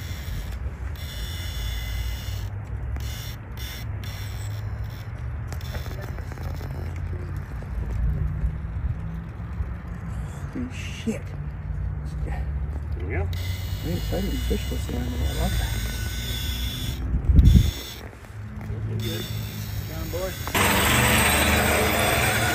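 Plastic tyres scrape and grind on rough rock.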